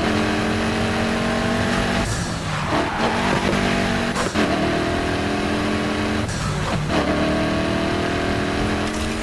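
A car engine roars loudly, shifting through gears as it speeds up.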